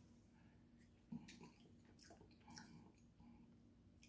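A man chews food with loud, wet smacking sounds.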